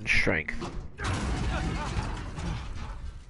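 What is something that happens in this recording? A heavy metal gate creaks open.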